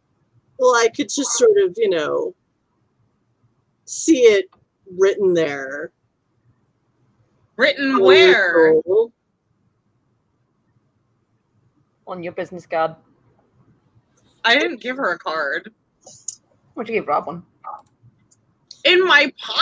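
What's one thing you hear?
A woman speaks with animation into a headset microphone over an online call.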